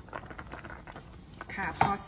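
Metal tongs scrape and clink against a pot.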